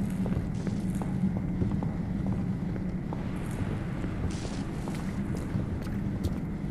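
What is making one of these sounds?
Footsteps patter quickly on a hard floor.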